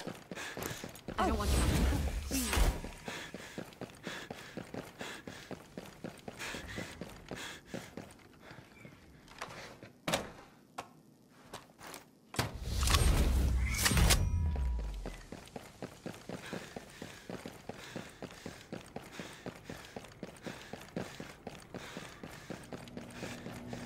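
Footsteps tread quickly and steadily on a hard floor.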